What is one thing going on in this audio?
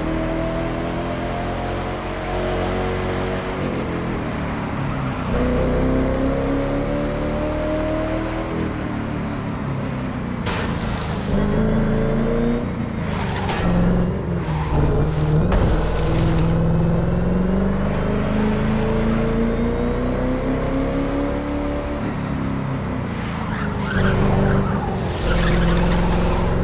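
A sports car engine roars at high speed, its pitch rising and dropping with gear changes.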